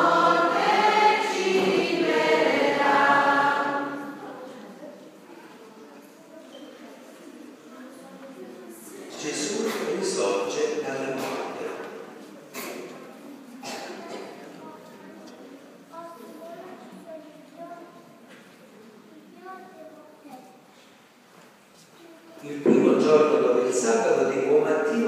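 A man reads aloud through a loudspeaker in a large echoing hall.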